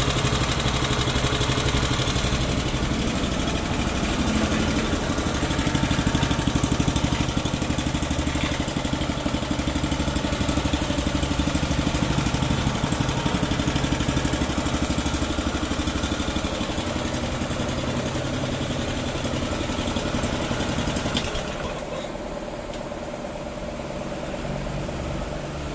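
A small petrol engine runs with a fast, steady chugging throb, then drops quieter.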